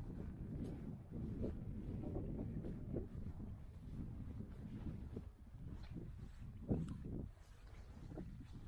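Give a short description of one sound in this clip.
Wind rumbles and buffets in gusts outdoors.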